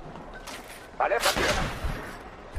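Bullets strike metal with sharp impacts.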